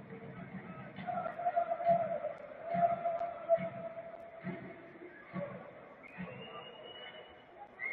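A stadium crowd chants and sings loudly in the open air.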